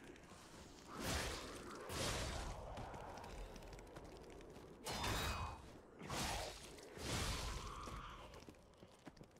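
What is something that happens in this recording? Blades clash and slash in heavy strikes.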